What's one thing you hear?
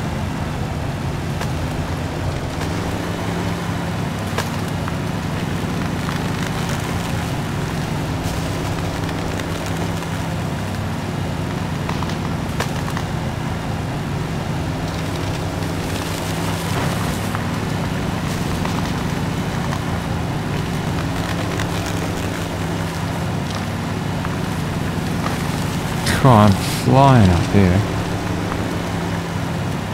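Tyres crunch over grass and rocks.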